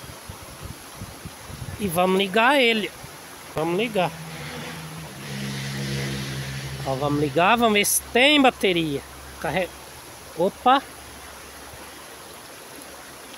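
Water rushes and splashes nearby.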